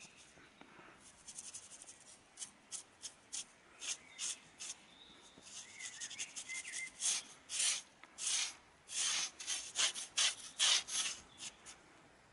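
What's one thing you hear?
A sponge scrubs against rough stone in short, quick strokes.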